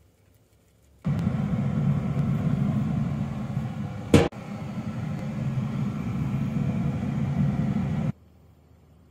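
A grill hums steadily.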